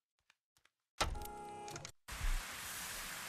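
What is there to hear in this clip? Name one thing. A sliding metal door whooshes open.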